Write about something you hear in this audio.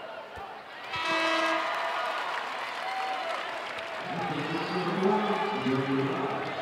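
A large indoor crowd cheers and roars with echo.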